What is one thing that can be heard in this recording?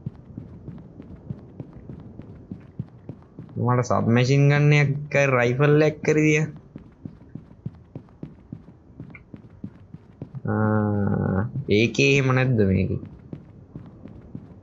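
Quick footsteps patter softly on grass and a path.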